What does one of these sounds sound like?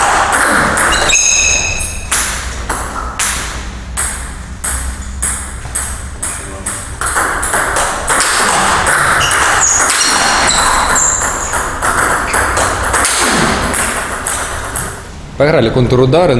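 A table tennis ball clicks rapidly back and forth off paddles and the table.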